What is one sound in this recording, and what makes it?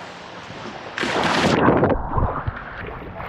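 Water splashes loudly as a man plunges in.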